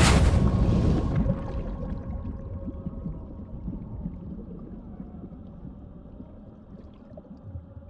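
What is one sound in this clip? Water rumbles dully, muffled as if heard from underwater.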